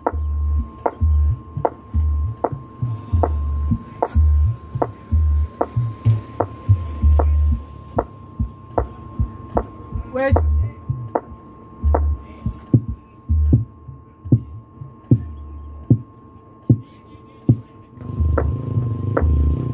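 Deep bass thumps boom in a steady beat from large loudspeakers outdoors.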